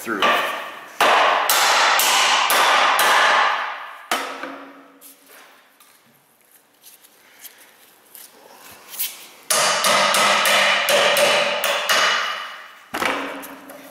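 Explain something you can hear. A hammer strikes metal with sharp ringing blows.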